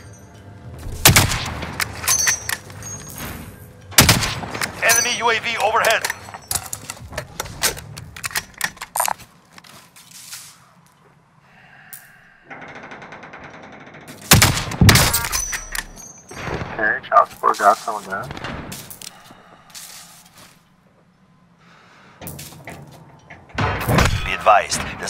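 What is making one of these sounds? A scoped sniper rifle fires sharp, booming shots.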